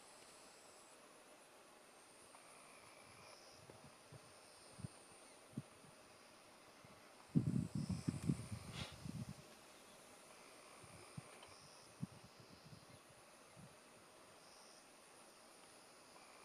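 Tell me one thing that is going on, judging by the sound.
Zebra hooves thud softly on a dirt track.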